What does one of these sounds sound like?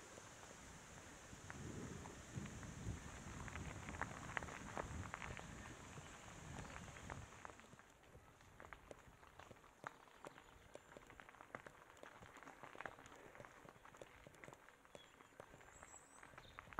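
Bicycle tyres crunch and pop over loose gravel.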